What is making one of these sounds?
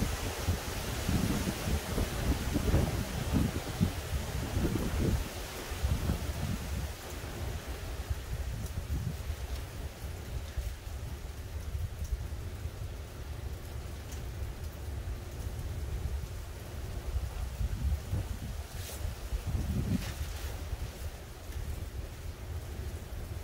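Wind gusts outdoors, buffeting with a low rumble.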